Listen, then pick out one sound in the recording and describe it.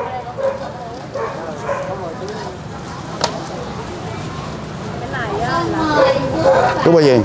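Several adults talk at once nearby, outdoors.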